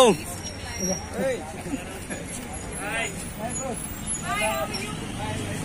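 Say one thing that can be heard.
A young man greets cheerfully.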